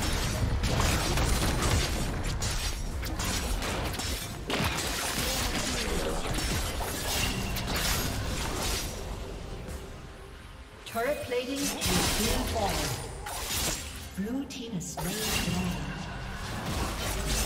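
Game spells whoosh and crackle as characters clash in battle.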